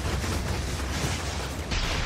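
Electric bolts crackle and zap.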